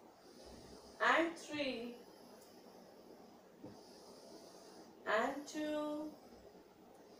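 A young woman speaks calmly and clearly, close by, in short bursts.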